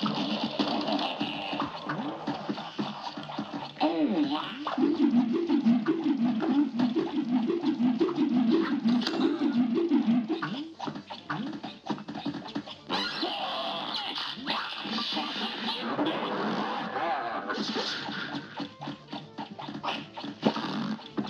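Cartoon shots pop in quick, rapid bursts.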